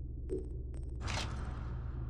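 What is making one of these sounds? A soft whoosh sweeps through a game menu.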